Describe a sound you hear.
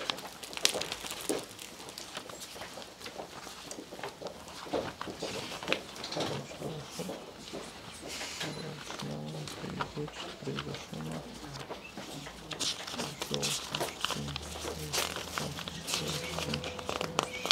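Pens scratch on paper.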